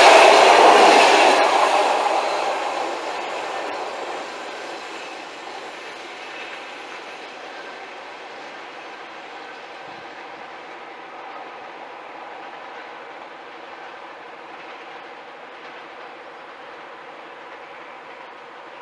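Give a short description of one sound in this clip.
A diesel locomotive idles with a low steady hum.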